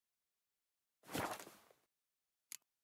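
A game menu whooshes softly as it closes.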